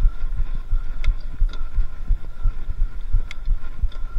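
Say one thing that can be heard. A bicycle rattles sharply over bumps.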